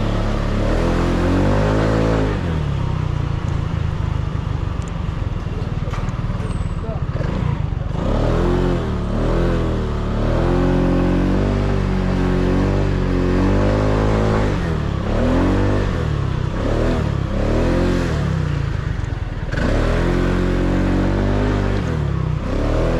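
A scooter engine hums close by, revving up and down as it rides.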